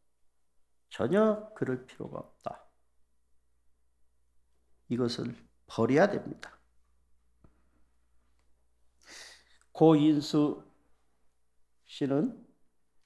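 A middle-aged man speaks calmly and slowly into a microphone, with long pauses.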